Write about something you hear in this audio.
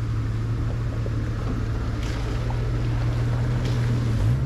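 Tyres crunch over loose rocks.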